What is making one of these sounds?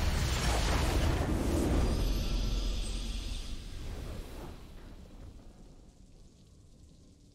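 A triumphant fanfare swells and slowly fades.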